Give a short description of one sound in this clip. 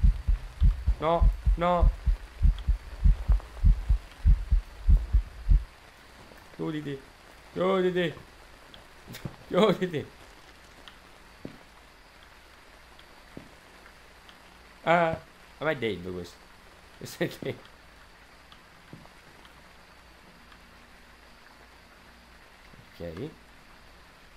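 A young man speaks quietly into a microphone in short bursts.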